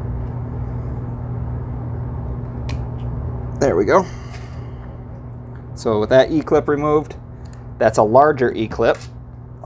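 Small plastic and metal parts click and rattle as hands handle them.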